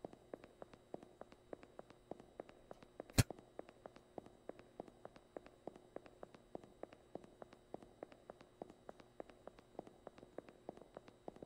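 Footsteps tap quickly and steadily on a hard tiled floor.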